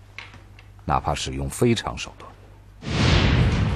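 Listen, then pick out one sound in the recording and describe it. A man speaks in a low voice.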